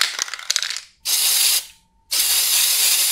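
An aerosol spray can hisses in short bursts.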